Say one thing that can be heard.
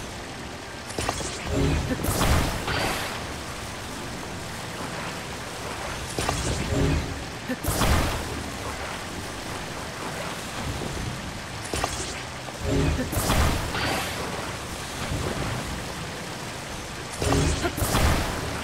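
A bright magical whoosh and crackle sounds in short bursts.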